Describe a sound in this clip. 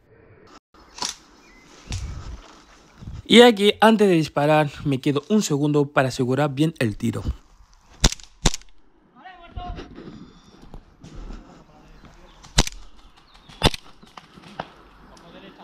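An airsoft pistol fires sharp, snapping shots.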